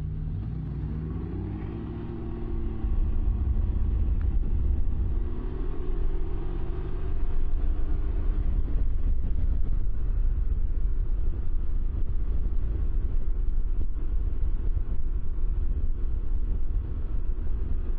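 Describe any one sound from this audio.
A motorcycle engine revs up as the bike pulls away and speeds up.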